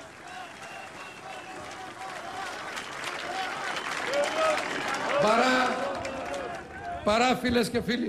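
A crowd cheers and chants loudly outdoors.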